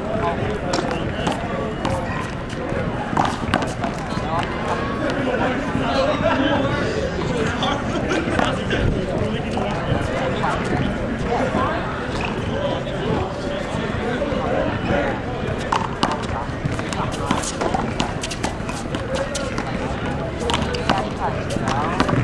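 Sneakers scuff on concrete.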